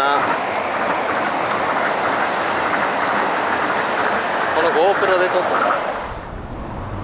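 Wind buffets the microphone loudly outdoors.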